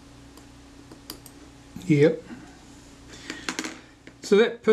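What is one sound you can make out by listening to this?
Small metal parts click and tap together.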